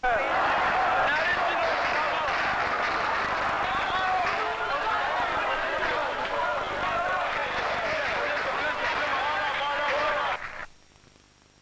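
A large crowd shouts and chants outdoors.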